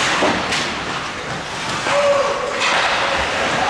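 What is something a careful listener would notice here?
A hockey stick slaps a puck with a sharp crack.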